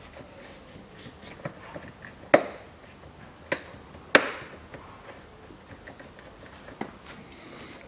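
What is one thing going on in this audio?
A hand rattles and clicks plastic wiring connectors.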